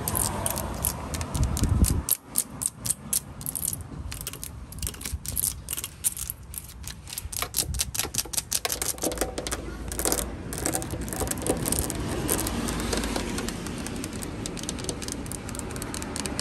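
Long fingernails tap and click rapidly on metal and rubber.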